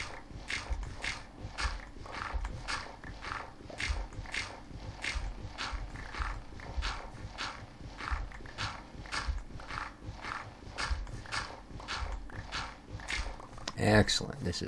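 A shovel digs into gravel with quick, steady crunches.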